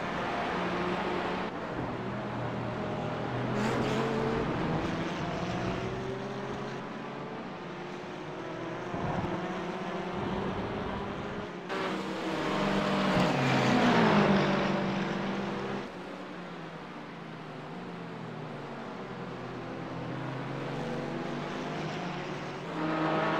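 Racing car engines roar and whine as they shift through gears.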